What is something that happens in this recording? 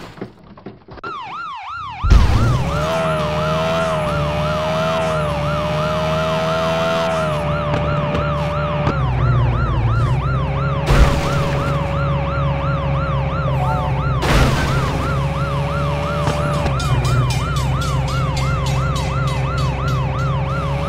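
A police siren wails in a rapid, steady warble.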